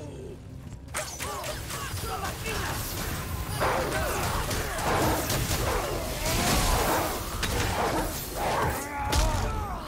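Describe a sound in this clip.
Weapons clash and strike in a loud, chaotic fight.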